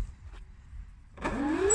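A small electric motor whirs up to speed.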